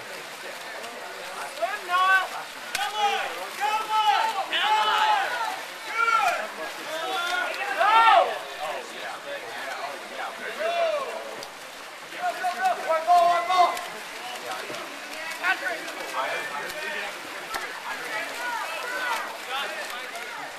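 Players splash and thrash through the water.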